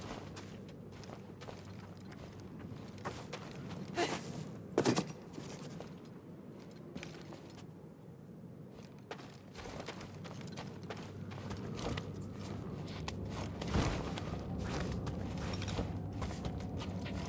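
Footsteps patter on soft ground.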